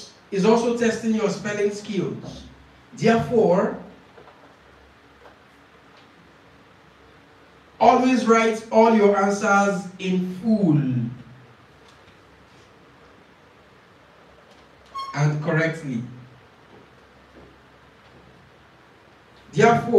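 A young man speaks into a microphone in short, clear phrases with pauses between them.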